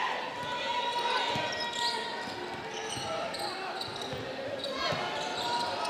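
A basketball bounces on a wooden court.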